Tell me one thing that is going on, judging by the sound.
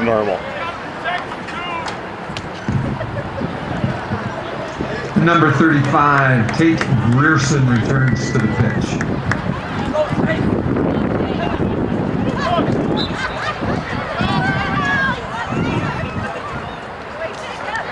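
Spectators on the sideline call out and cheer.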